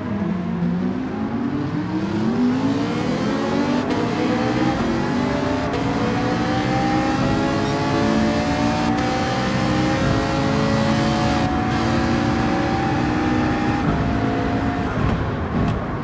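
A race car engine revs up through the gears, rising in pitch.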